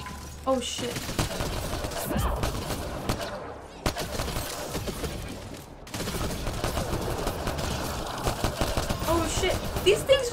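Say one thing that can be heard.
A young woman talks into a microphone close by.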